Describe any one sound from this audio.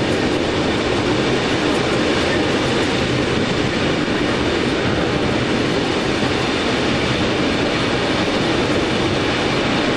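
Train wheels clatter over track joints and switches.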